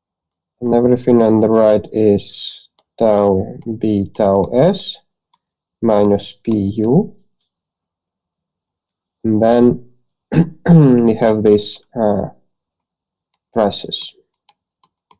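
A man explains calmly through an online call, in short phrases with pauses.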